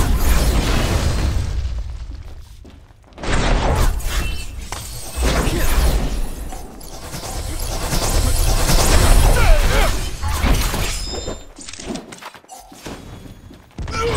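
Fiery blasts crackle and rumble.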